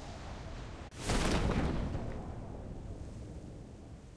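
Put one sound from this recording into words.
A parachute snaps open with a loud whoosh.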